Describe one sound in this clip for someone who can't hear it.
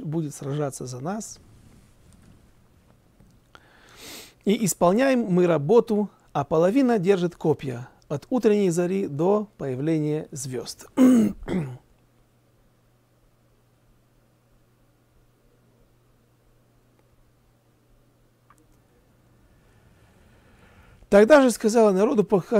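A middle-aged man reads aloud in a calm, chanting voice, close to a microphone.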